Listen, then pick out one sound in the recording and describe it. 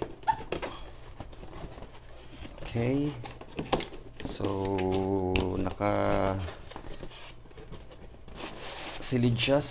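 A cardboard box scrapes and rustles as hands handle it.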